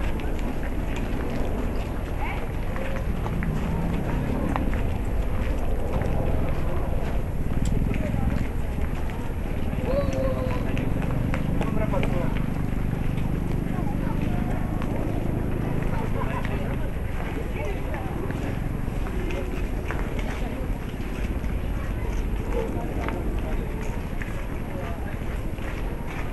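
A crowd of people chatters quietly in the distance outdoors.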